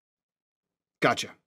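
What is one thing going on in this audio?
A man speaks briefly into a microphone through an online call.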